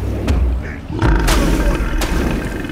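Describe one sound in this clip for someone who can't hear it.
Magic blasts whoosh and crackle.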